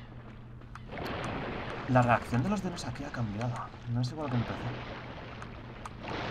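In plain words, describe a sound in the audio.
A large sea creature growls and roars.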